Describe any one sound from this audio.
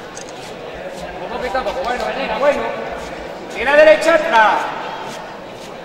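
Men talk nearby among the crowd.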